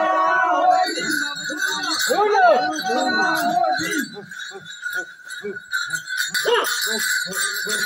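Men sing and chant loudly outdoors.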